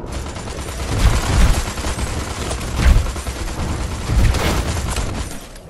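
Deep explosions boom and rumble.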